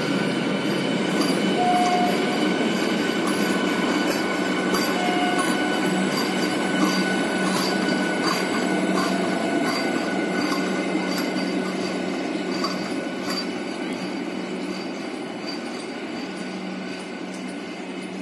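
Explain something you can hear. A passenger train rumbles past on the tracks, slowly fading as it moves away.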